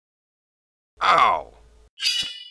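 A man shouts with effort.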